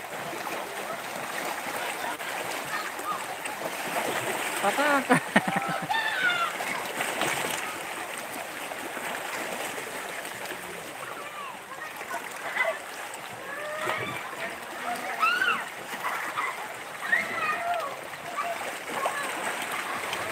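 Small waves lap and splash against rocks close by.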